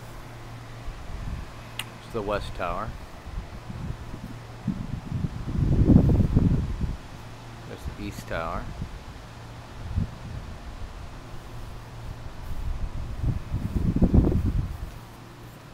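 Wind gusts outdoors, rumbling in bursts.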